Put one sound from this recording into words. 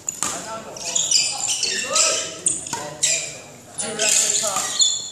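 Sports shoes squeak on a hard indoor floor.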